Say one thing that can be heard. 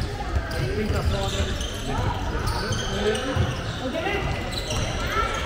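Young male players shout to each other in an echoing hall.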